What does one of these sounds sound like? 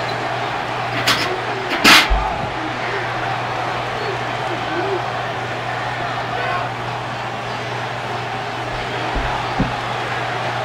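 A body thumps heavily onto a soft mattress.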